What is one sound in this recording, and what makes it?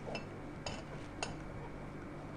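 Glass jars clink lightly.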